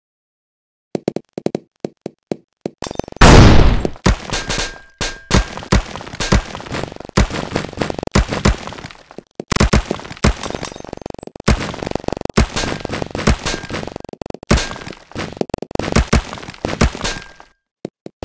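Blocks crash and shatter in a rapid clatter of game effects as a heap of balls tumbles down.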